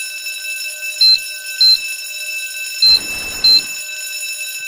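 Keypad buttons beep sharply, one press at a time.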